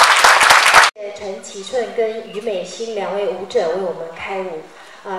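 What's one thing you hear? A woman speaks into a microphone.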